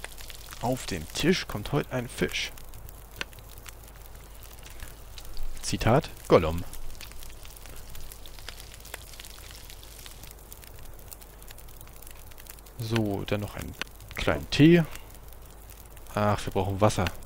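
A fire crackles softly in a stove.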